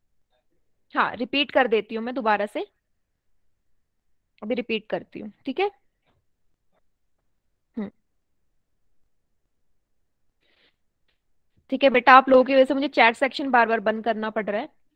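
A young woman speaks calmly into a headset microphone, in short bursts with pauses.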